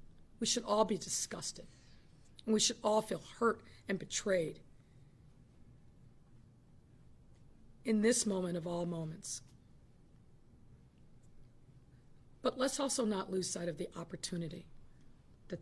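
A woman speaks calmly into a microphone, with pauses between phrases.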